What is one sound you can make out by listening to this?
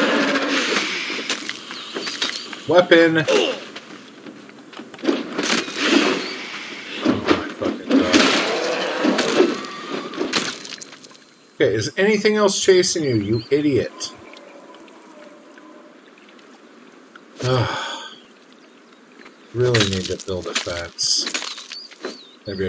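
A pick hacks into a carcass with heavy, wet thuds.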